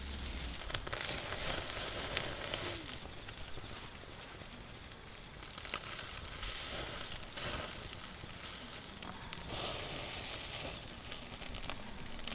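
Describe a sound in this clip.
Sausages sizzle on a grill over a crackling fire.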